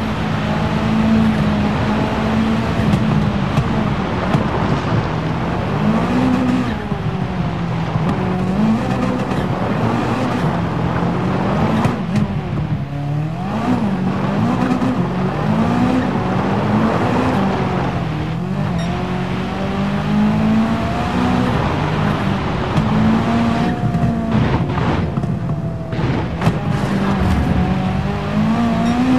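A rally car engine revs hard, rising and falling with gear changes.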